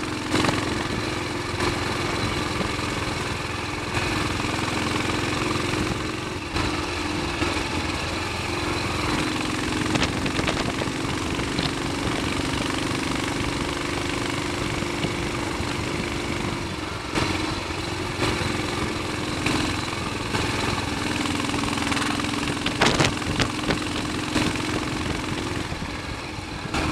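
Wind buffets past the rider.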